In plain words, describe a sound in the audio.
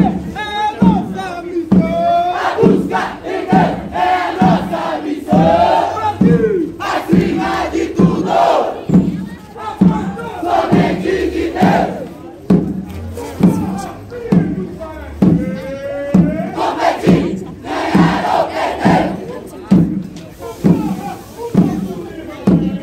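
Brass horns play a loud melody.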